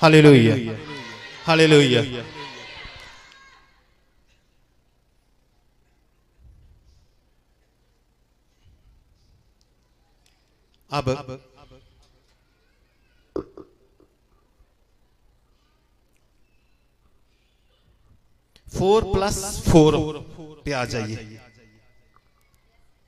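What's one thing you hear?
An elderly man speaks slowly into a microphone, with long pauses, heard through a loudspeaker.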